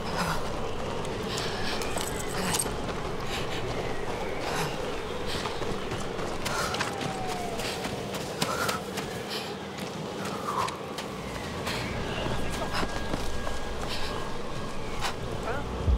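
Strong wind howls steadily through a snowstorm.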